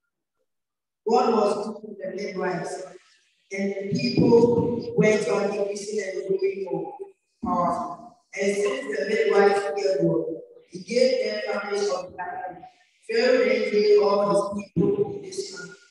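A woman speaks slowly through a loudspeaker in a large echoing hall.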